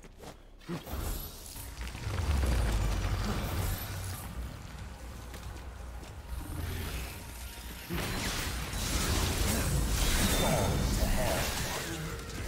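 Heavy thuds and crashes boom during a fight.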